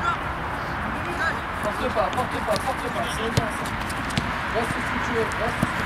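Young men call out to each other across an open field.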